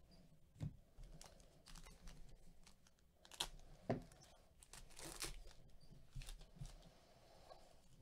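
A foil wrapper crinkles and tears as it is opened.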